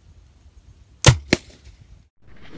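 A homemade pipe gun fires with a sharp bang.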